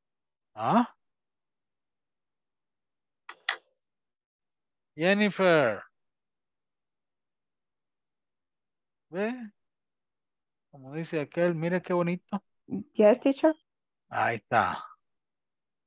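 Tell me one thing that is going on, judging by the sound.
A man speaks in short phrases through an online call.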